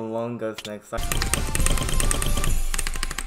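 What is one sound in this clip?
Keyboard keys click rapidly.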